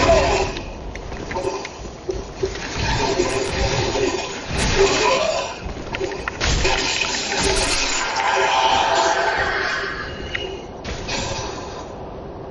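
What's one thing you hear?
Metal swords clang and strike against each other.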